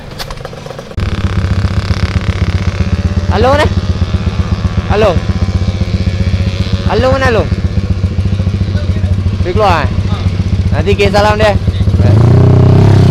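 A motorcycle engine idles with a rapid, steady putter.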